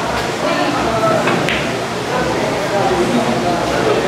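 Billiard balls clack together on a table.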